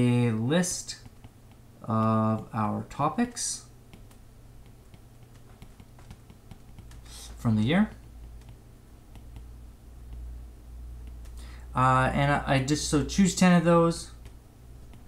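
A man speaks calmly and close to a microphone, in short bursts with long pauses.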